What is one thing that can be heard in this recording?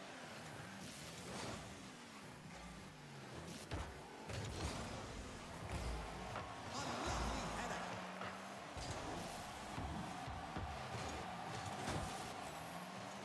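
A car engine revs and roars with boosting bursts.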